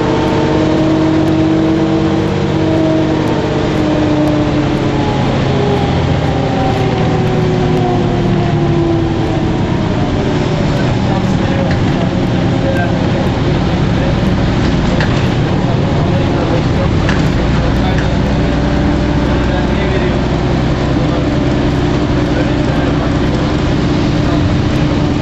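A bus engine drones steadily, its pitch rising and falling as the bus moves.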